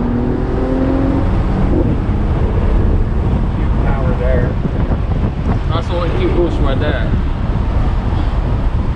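A car engine hums with steady road noise from inside the cabin.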